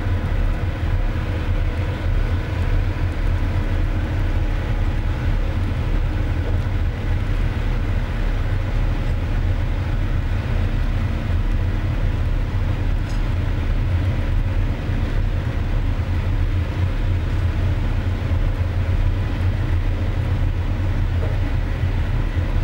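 A large ship's engine rumbles steadily nearby.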